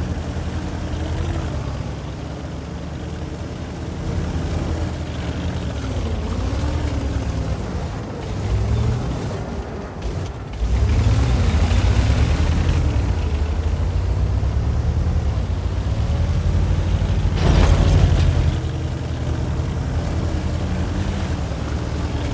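A heavy tank engine rumbles and roars as it drives.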